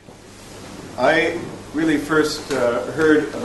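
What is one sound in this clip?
A man speaks calmly to an audience, heard through a microphone.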